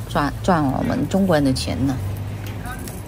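A woman speaks animatedly close by.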